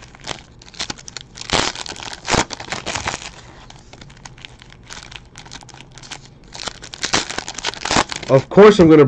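A foil card wrapper crinkles and tears in someone's hands.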